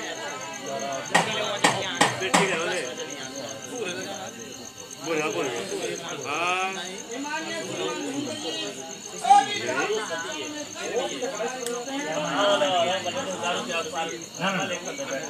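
A crowd of men and women talk loudly all around, close by.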